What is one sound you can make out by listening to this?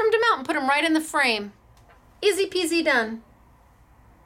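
A woman speaks cheerfully and close to a microphone.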